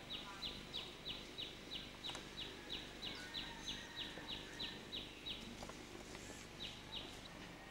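Bare feet shuffle softly on pavement.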